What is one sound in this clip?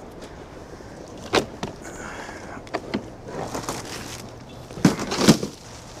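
Plastic crates clatter as they are stacked.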